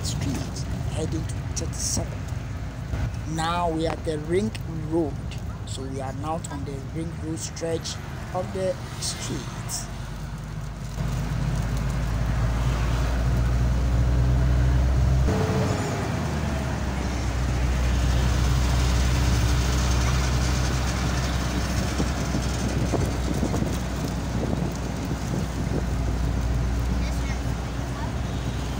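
A car engine hums steadily as the car drives along.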